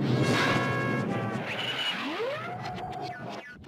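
A cartoon robot cat clatters to pieces on the floor.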